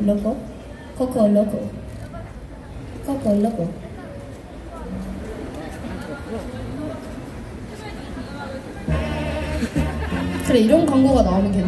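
A young woman sings into a microphone through a loudspeaker.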